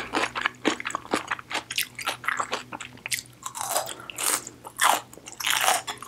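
A woman crunches a crisp cucumber close to a microphone.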